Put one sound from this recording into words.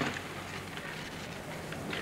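Shovels scrape and crunch into gravel.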